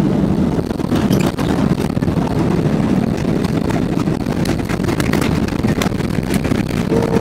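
Landing wheels thump and rattle onto a runway.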